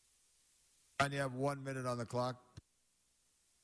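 An older man speaks briefly into a microphone.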